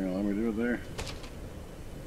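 A wooden window shutter bangs shut.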